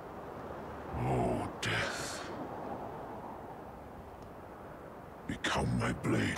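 A huge creature groans and growls deeply.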